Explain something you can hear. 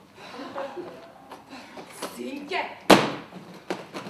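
A suitcase thumps onto the floor.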